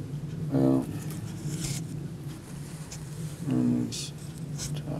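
A middle-aged man close by makes two short humming sounds.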